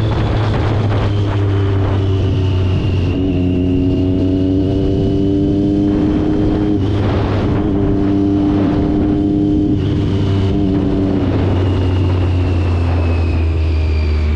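A scooter engine hums steadily at speed.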